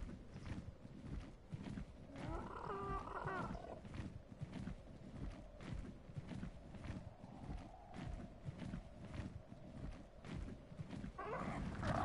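Large wings flap in flight.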